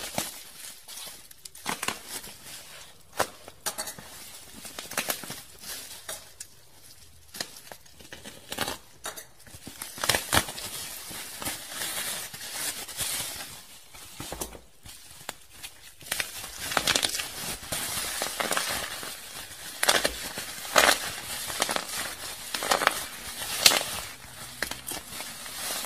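Plastic bubble wrap crinkles and rustles close by.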